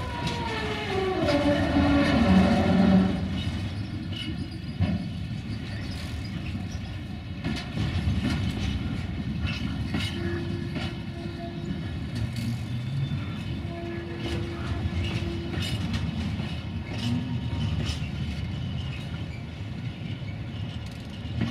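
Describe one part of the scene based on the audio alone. Train wheels clack over rail joints.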